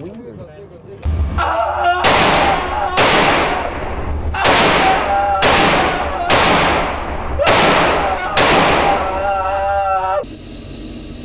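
A rifle fires a quick series of loud shots that echo.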